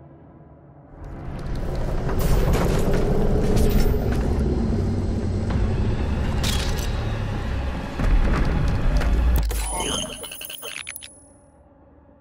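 A deep rumbling game soundtrack swells, loud and heavy.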